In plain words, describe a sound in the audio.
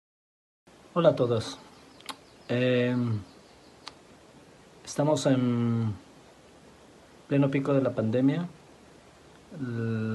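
A middle-aged man speaks slowly and calmly, close to a phone microphone.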